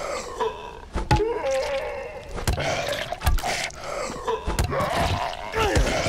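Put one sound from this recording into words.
A blade strikes flesh with wet, heavy thuds.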